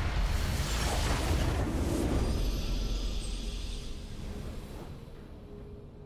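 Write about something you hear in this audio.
A game's victory fanfare swells with a bright whooshing burst and then fades.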